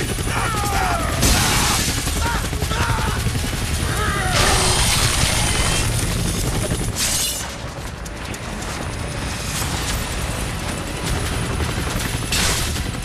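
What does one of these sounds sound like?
A helicopter's rotor drones and thumps steadily.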